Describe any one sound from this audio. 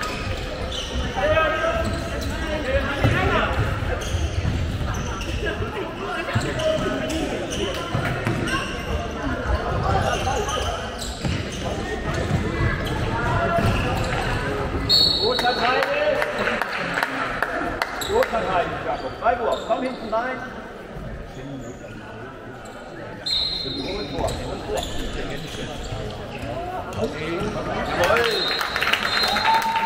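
A handball bounces on a wooden floor.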